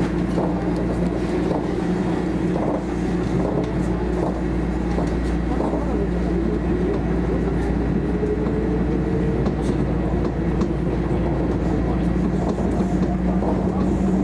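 A train pulls away and its motor whine rises as it picks up speed.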